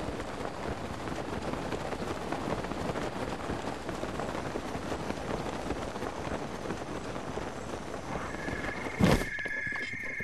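Strong wind gusts and roars.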